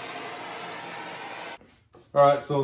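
A blowtorch hisses steadily.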